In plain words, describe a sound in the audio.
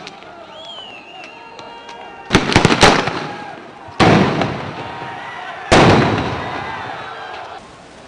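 A crowd shouts in the distance.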